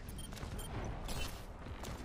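Video game gunfire rattles in quick bursts.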